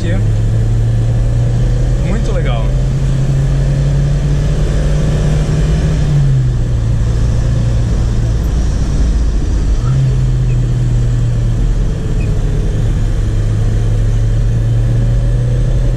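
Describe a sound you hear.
A car engine hums steadily from inside the cabin, its pitch shifting as gears change.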